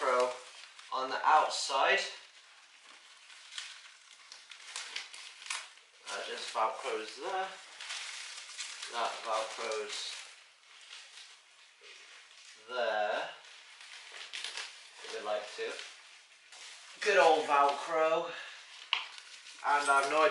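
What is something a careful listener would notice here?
Nylon fabric rustles and crinkles as it is handled.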